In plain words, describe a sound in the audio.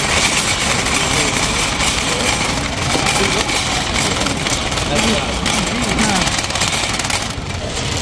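A shopping cart rattles as it rolls along a hard floor.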